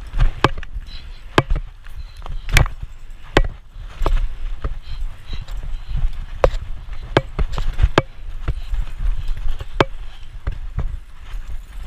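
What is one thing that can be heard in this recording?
A bicycle frame rattles and clicks over bumps.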